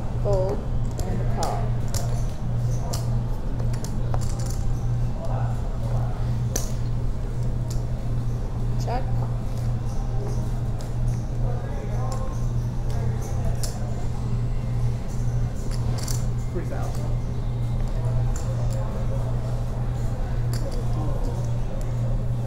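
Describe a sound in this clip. Men talk casually around a table.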